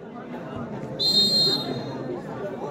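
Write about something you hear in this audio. A referee's whistle blows shrilly once.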